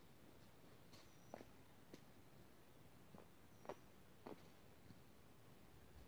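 Footsteps crunch and twigs snap on dry leaves nearby.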